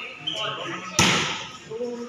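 A ball is struck with a sharp smack.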